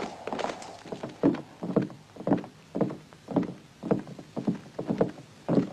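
Heavy boots thud slowly across a wooden floor.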